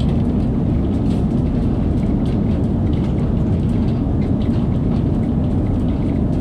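A train rumbles steadily along the track through a tunnel.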